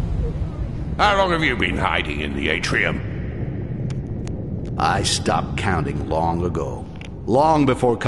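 A man talks calmly into a nearby microphone.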